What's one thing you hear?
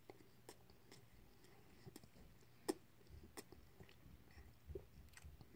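A young man chews food noisily with his mouth close by.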